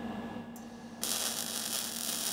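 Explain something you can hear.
A welding arc crackles and hisses steadily.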